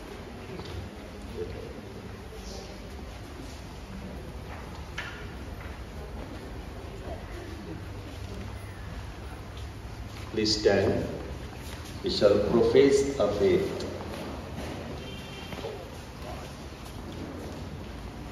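A crowd of people murmurs quietly in an echoing hall.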